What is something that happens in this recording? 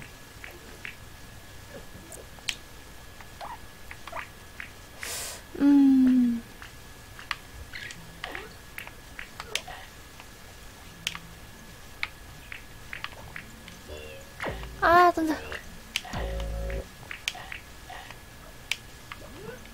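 Soft plinking game notes ring out in quick succession.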